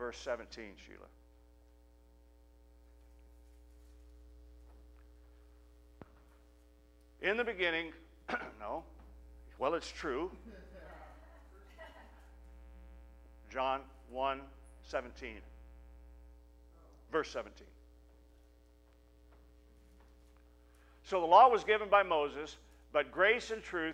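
A man speaks with animation through a microphone, with long pauses.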